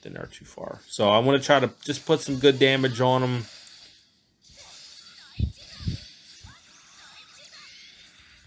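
Electronic battle sound effects clash and thud.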